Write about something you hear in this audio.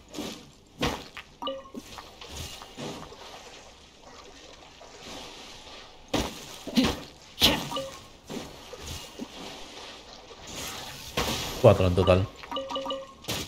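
A sword swings and slashes with sharp whooshes.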